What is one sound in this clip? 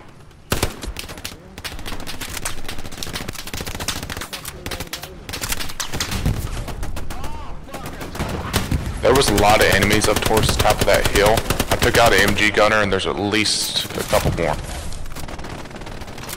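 Gunfire crackles in rapid bursts nearby.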